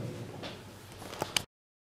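A microphone knocks and rustles as it is handled.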